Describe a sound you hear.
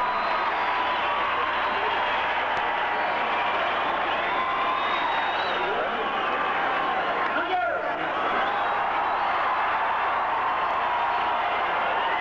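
A band plays loud music.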